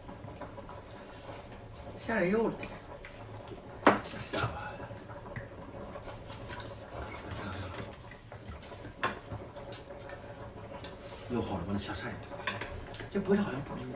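A hot pot bubbles steadily.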